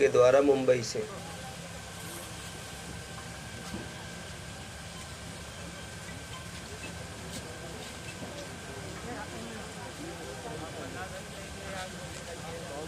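A crowd murmurs and chatters outdoors in the distance.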